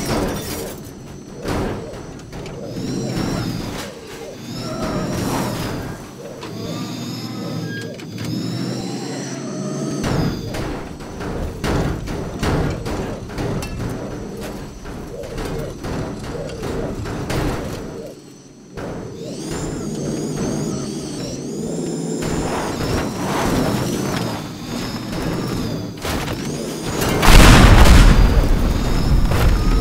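A car engine revs and roars, rising and falling in pitch.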